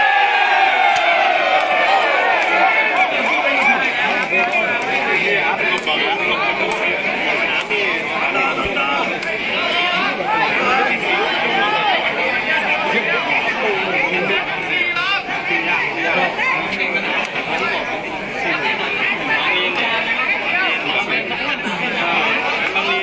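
A large outdoor crowd of men shouts and cheers loudly.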